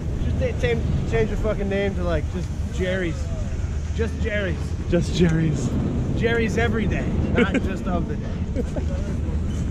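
A young man talks close by, outdoors.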